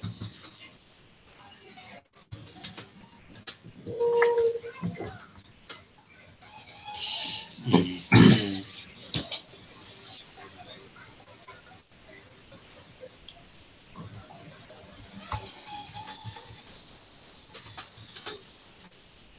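A woman speaks through an online call.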